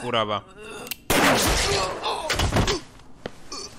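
A gunshot rings out loudly.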